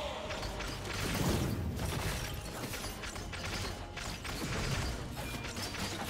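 Magic blasts crackle and burst in quick bursts.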